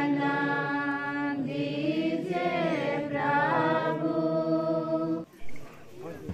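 A man sings loudly through a loudspeaker.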